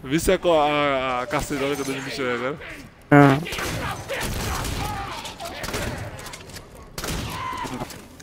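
Rapid gunfire bursts in a video game.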